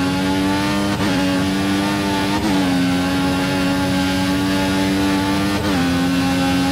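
Gear shifts click sharply as the engine speeds up.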